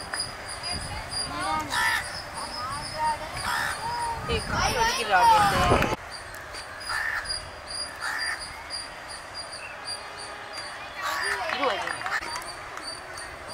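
Young men call out and shout to each other in the open air.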